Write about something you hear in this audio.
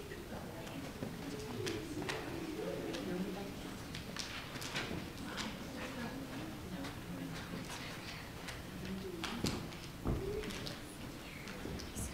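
Children's footsteps shuffle across the floor.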